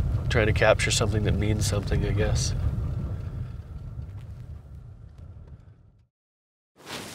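A car engine rumbles while driving.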